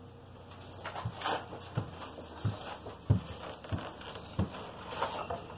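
Footsteps thud across a hard floor.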